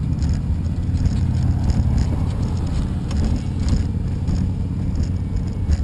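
Cars drive past on a road.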